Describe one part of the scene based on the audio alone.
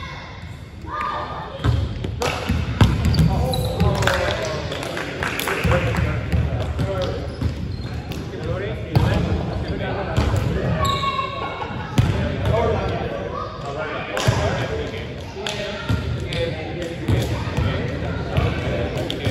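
Young men shout and call out to each other, echoing in a large hall.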